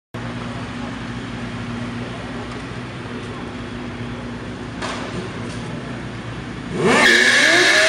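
Motorcycle engines idle with a low steady rumble.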